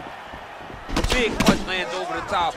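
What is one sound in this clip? A punch lands with a heavy smack.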